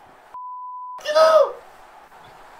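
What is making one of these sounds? A young woman exclaims loudly into a microphone.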